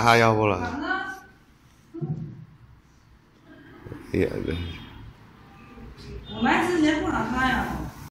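A middle-aged woman talks nearby.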